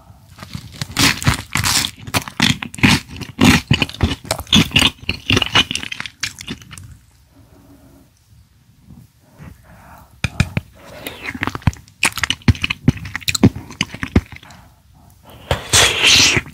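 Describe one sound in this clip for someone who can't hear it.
A spoon scrapes and clinks against a metal pan.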